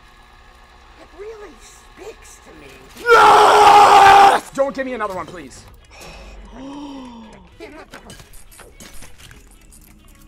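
A young man talks excitedly and shouts into a microphone.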